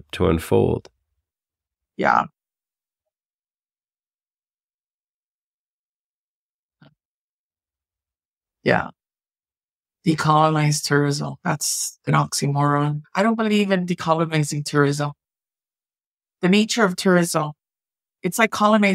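A woman speaks calmly and clearly into a microphone, with pauses.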